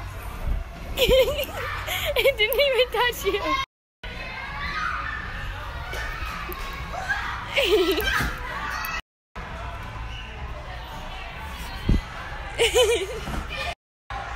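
A young woman squeals and laughs nearby.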